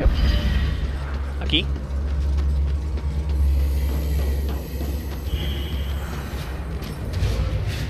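Heavy footsteps thud quickly on hard ground.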